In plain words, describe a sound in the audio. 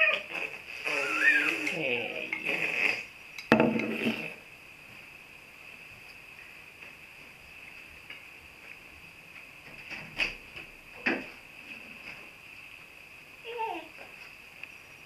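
Babies babble and squeal close by.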